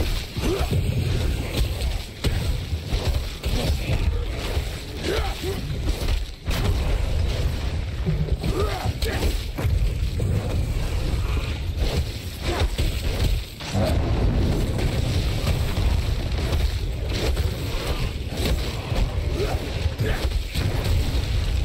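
Magic blasts burst with deep rumbling booms.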